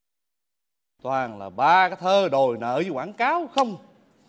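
A man speaks with animation.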